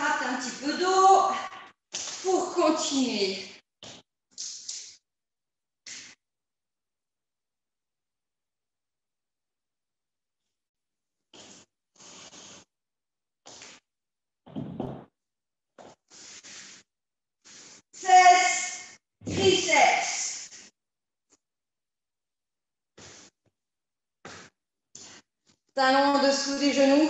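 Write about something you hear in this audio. A woman talks calmly into a close microphone, in bursts with pauses, as if heard over an online call.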